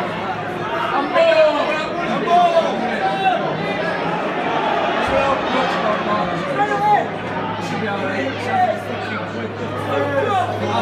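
Men nearby shout and call out.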